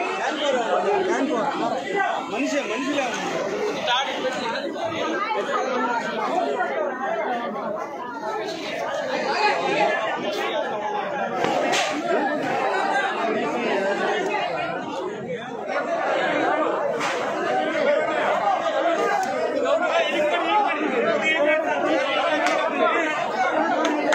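A crowd of men shouts and talks excitedly close by.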